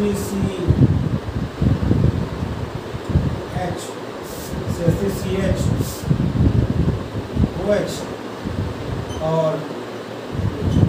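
A man speaks steadily, explaining as he goes.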